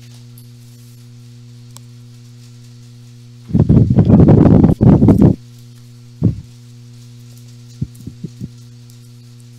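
Playing cards slide and tap on a table mat.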